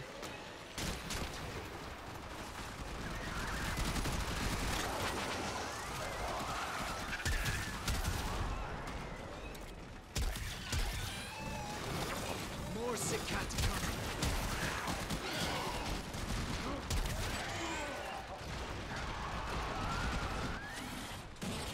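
Gunfire and blasts crackle and boom in a fast-paced fight.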